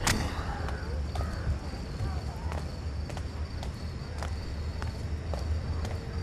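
Footsteps tread slowly and steadily on stone.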